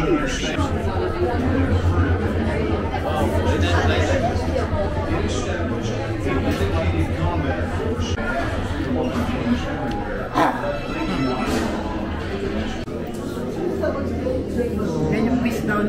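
A crowd of people chatter nearby in an enclosed space.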